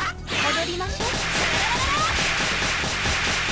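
A video game explosion bursts with a rumbling blast.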